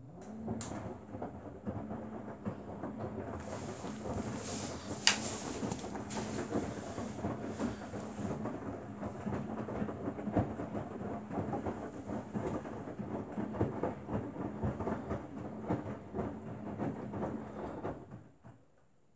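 A front-loading washing machine's motor hums as its drum turns.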